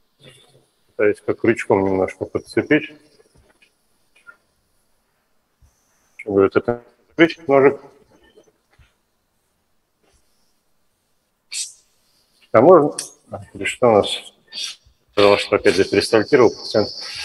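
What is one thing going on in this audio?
A man speaks calmly through a microphone, in short bursts with pauses.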